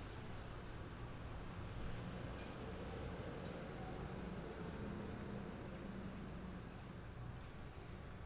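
Hard-soled shoes step on a concrete sidewalk.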